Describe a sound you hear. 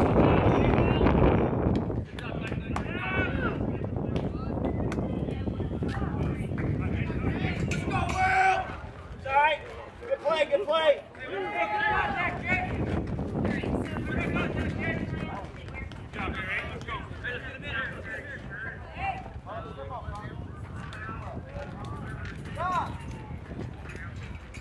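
Young players shout and cheer across an open field.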